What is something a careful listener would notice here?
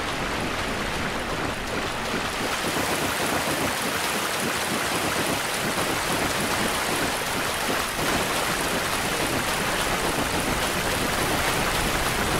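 Water splashes steadily.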